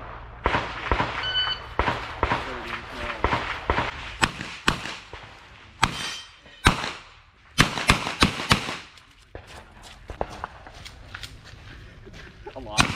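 A pistol fires rapid shots outdoors, each crack followed by a short echo.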